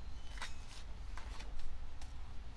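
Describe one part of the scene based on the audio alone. A paper page turns with a soft rustle.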